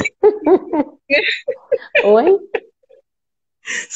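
A second middle-aged woman laughs over an online call.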